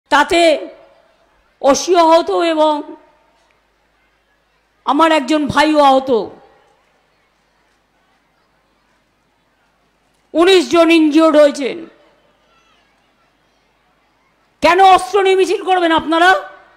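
A middle-aged woman speaks forcefully into a microphone over loudspeakers, in short bursts with pauses.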